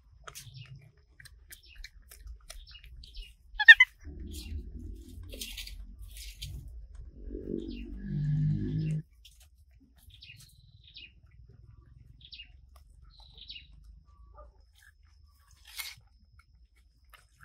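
Monkeys chew and smack on fruit.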